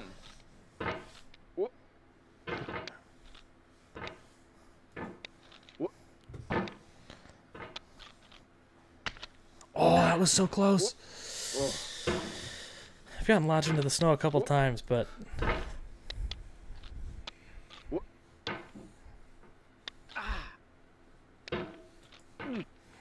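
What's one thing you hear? A hammer knocks and scrapes against rock.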